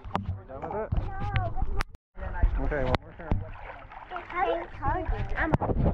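Water splashes as children swim.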